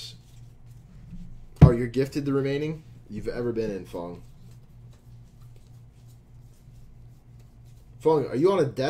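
Trading cards rustle and slide as they are sorted by hand.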